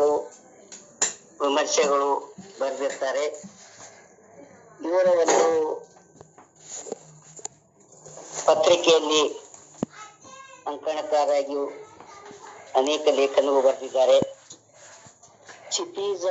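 An elderly man reads aloud calmly, close to the microphone.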